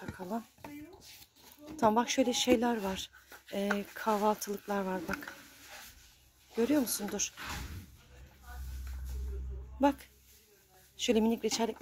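Cardboard boxes scrape and knock as hands handle them.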